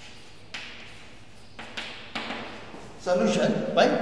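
Chalk scratches and taps on a blackboard.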